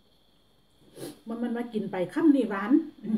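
A young woman speaks close to the microphone with animation.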